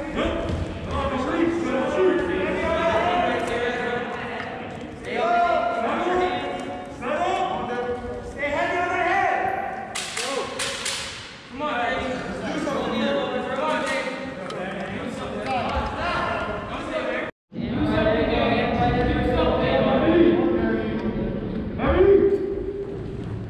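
Wrestlers' shoes squeak and thump on a mat.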